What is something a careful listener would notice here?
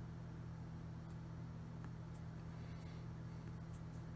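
A fingertip taps lightly on a touchscreen.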